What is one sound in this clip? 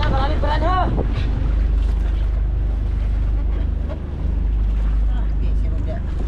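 Waves lap against a boat's hull.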